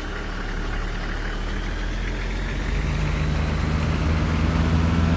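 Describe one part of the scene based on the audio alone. A bus engine rumbles steadily and grows louder as it speeds up.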